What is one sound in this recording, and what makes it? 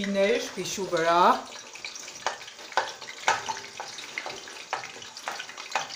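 A fork scrapes against a frying pan.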